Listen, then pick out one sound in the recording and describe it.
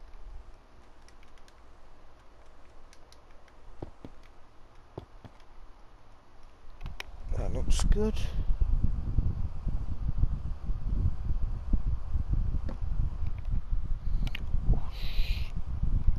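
A block is set down with a soft knock.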